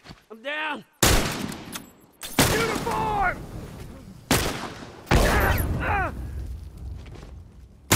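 A rifle fires loud shots that echo and ring away.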